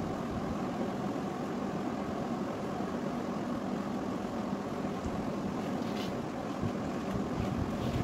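A hand mixes and rubs flour in a bowl.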